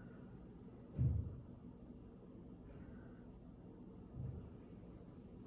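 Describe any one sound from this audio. A hand softly bumps the tabletop.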